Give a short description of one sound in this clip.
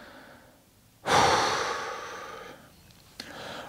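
A young man sighs heavily, close to a microphone.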